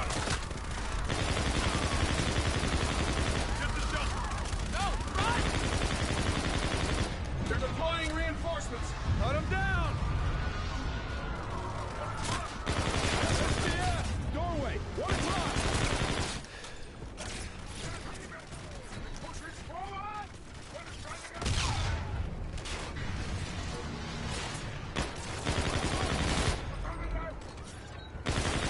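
Rapid gunfire rattles and booms.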